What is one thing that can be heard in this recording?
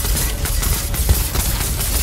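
Ice shatters and crunches loudly.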